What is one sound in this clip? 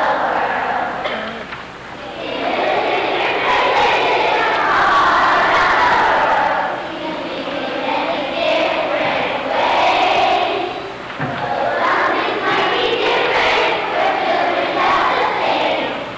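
A crowd of children sings together in a large echoing hall.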